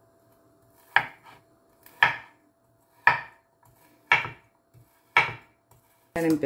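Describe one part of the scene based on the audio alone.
A knife chops on a cutting board with slow, regular thuds.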